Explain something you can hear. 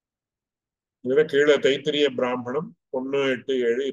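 A man speaks calmly into a microphone, as in an online lecture.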